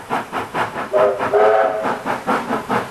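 A steam locomotive's whistle blows briefly.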